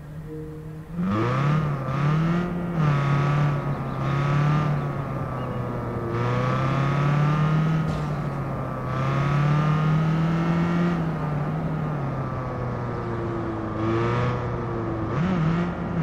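A car engine revs up and down.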